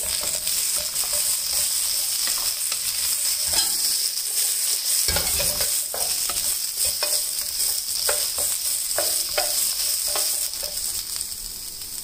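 A spatula scrapes and knocks against a frying pan.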